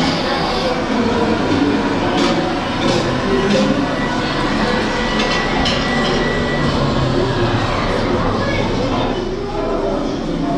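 Many people chatter in the background of a busy indoor room.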